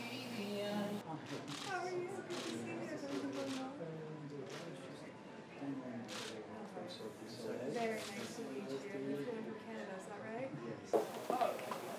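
People chat and greet each other.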